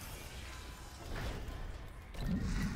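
A heavy sliding metal door opens with a mechanical whoosh.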